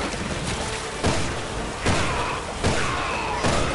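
Gunshots boom in a game, one at a time.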